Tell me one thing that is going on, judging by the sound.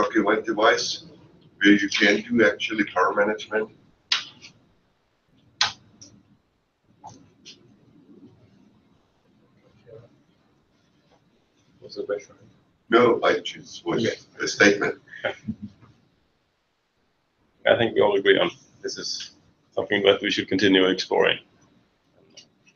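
A man speaks calmly into a microphone in a room with a slight echo.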